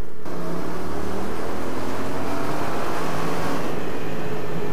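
Engine noise echoes inside a tunnel.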